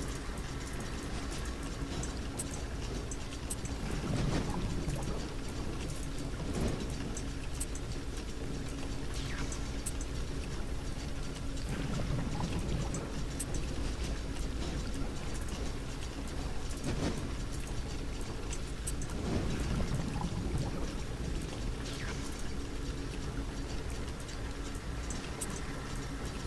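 Game pieces click softly into place as tiles are swapped.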